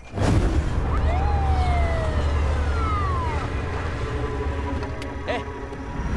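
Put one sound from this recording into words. A car door creaks open.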